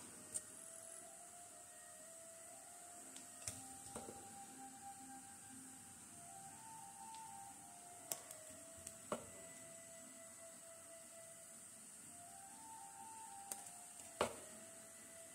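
A ladle clinks lightly against a pot.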